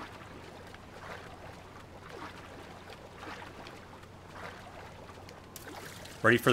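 Water splashes in soft, regular strokes as a swimmer paddles.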